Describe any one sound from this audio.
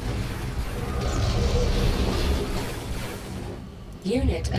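A laser beam crackles and hums with rumbling battle noise.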